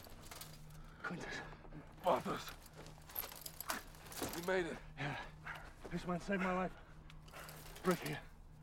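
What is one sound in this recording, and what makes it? A man groans and grunts in pain.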